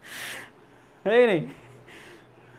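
A young man laughs.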